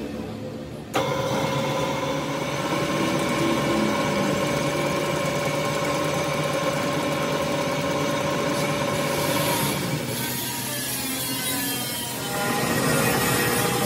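A lathe motor whirs steadily as its chuck spins.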